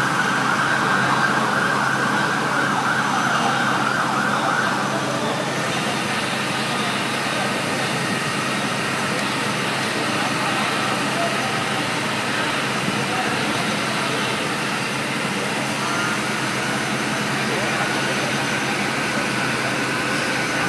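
A fire truck engine rumbles steadily nearby.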